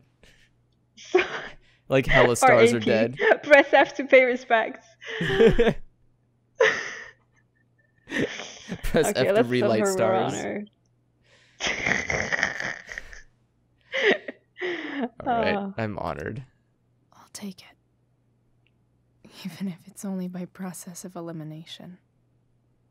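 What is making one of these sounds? A young woman speaks softly and slowly.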